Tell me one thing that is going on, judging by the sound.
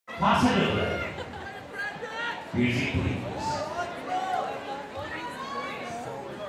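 A large crowd chatters in an echoing hall.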